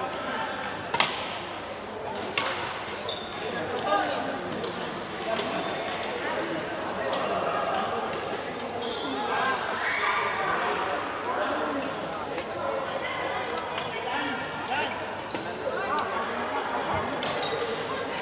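Shuttlecocks are struck with sharp racket smacks.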